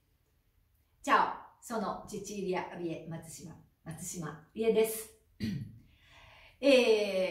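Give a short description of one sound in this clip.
A middle-aged woman talks with animation, close by.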